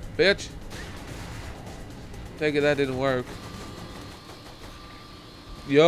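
A heavy gun fires in bursts.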